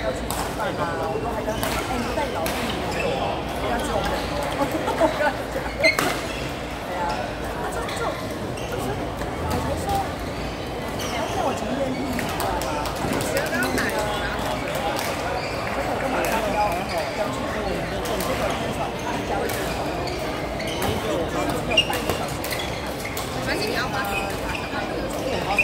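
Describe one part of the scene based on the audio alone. A crowd of people chatters steadily nearby.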